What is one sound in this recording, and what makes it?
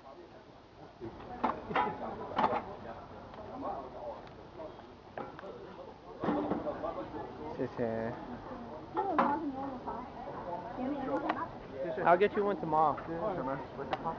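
Young people talk nearby outdoors.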